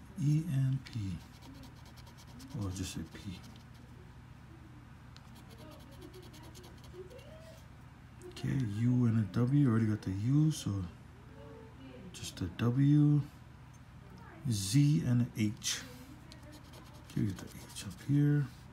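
A coin scratches across a paper ticket in short rasping strokes.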